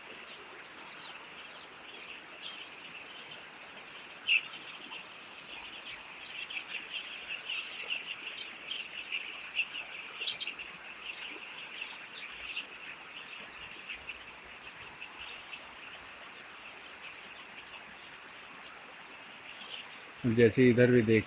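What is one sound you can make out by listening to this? Many chicks peep and chirp in high, busy voices.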